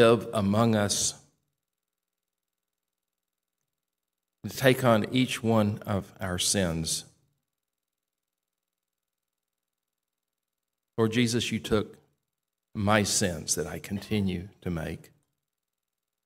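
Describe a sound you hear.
An older man reads out slowly through a microphone, with long pauses.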